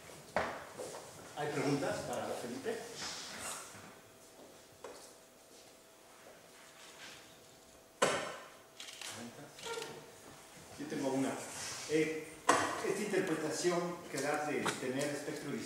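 A young man speaks calmly in an echoing room.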